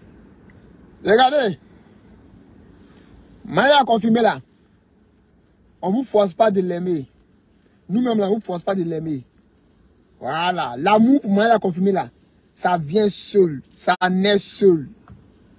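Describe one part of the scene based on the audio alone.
A young man speaks with animation, close by, in short bursts.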